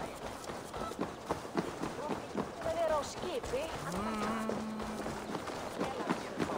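Footsteps thud on packed dirt and wooden planks.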